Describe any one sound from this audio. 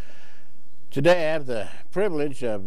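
An elderly man speaks calmly into a microphone, close by.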